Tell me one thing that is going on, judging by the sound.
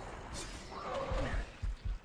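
A blade whooshes and strikes with a burst of fiery crackling.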